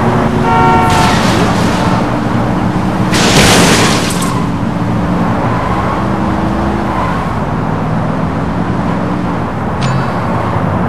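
A van engine hums steadily as it drives along a road.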